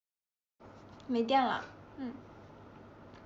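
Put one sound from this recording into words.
A young woman speaks briefly and softly, close to a phone microphone.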